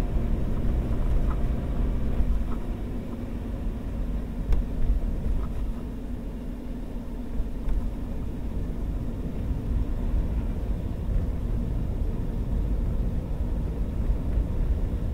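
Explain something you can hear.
Tyres crunch and hiss over packed snow.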